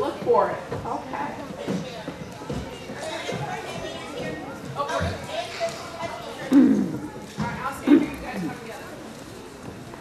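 A woman speaks with animation through a microphone in an echoing hall.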